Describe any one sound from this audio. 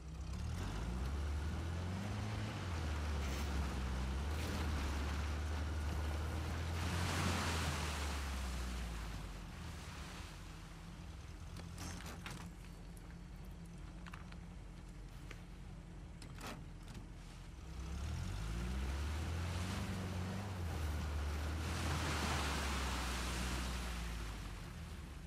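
A jeep engine rumbles and revs as the vehicle drives over rough ground.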